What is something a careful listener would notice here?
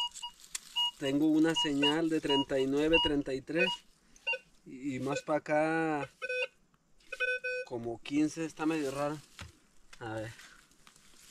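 A metal detector gives a loud warbling tone that wavers up and down.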